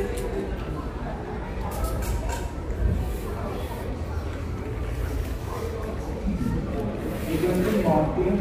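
Tent fabric rustles as it is handled.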